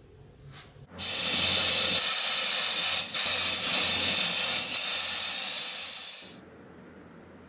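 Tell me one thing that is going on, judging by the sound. A powder spray gun hisses loudly.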